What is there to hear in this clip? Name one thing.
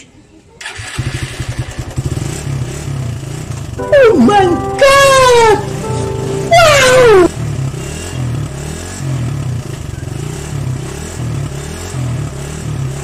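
A motorcycle engine starts and idles with a steady, rough rumble close by.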